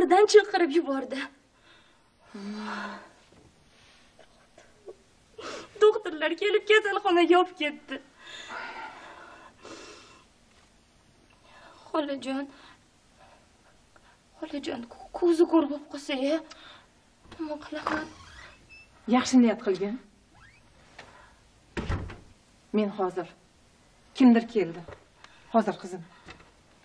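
A middle-aged woman talks softly, close by.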